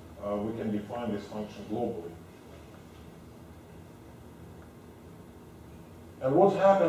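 A man lectures calmly in a large room, heard through a microphone.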